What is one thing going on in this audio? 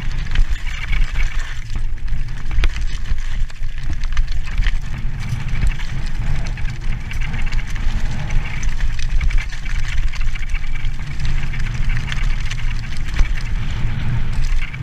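Wind rumbles hard against a microphone.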